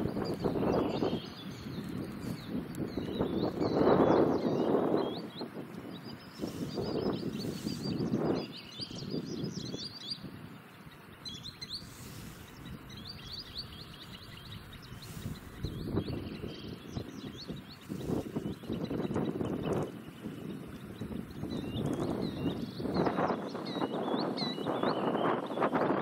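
Wind blows across open ground in uneven gusts.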